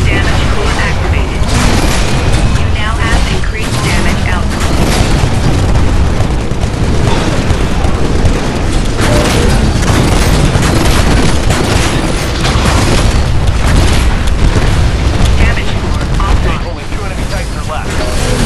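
A heavy gun fires in rapid bursts.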